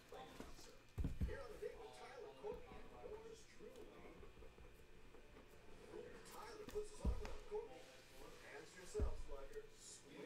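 Cardboard boxes knock and thud on a table.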